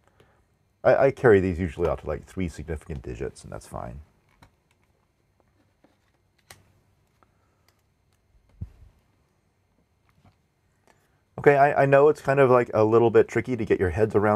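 A middle-aged man speaks calmly and closely into a microphone, pausing between phrases.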